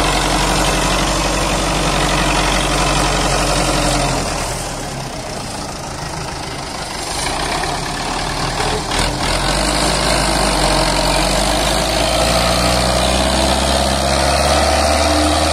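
A tractor's diesel engine chugs loudly nearby.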